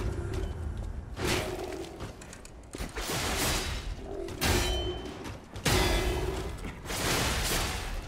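Metal blades clash and ring.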